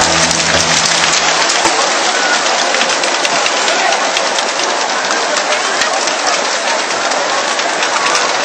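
A large outdoor crowd cheers and shouts loudly.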